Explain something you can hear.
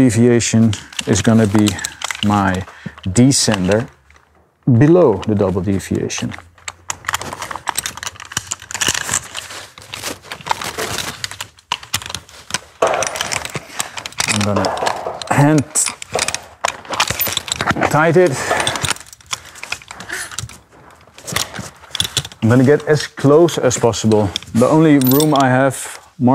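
A man speaks calmly and close by, explaining.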